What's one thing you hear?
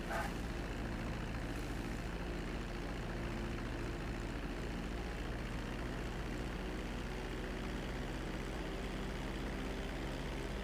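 Propeller engines of a small plane drone steadily as it taxis.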